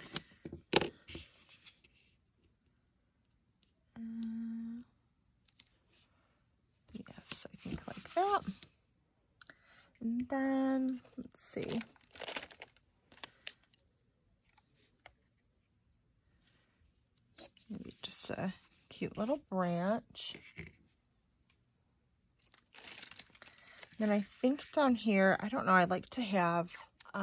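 Paper rustles and slides.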